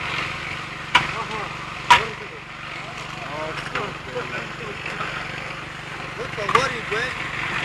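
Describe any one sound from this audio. Metal buckets clank as they are handed along.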